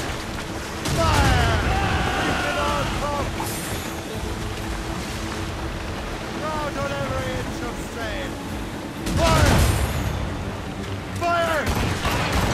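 Cannons fire in loud booming volleys.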